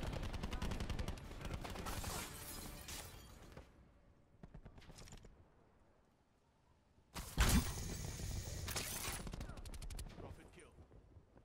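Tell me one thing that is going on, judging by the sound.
Bursts of rapid gunfire rattle close by.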